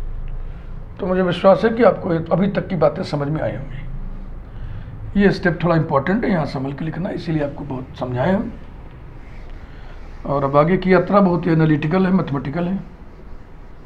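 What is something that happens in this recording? A middle-aged man speaks calmly and clearly, as if explaining a lesson.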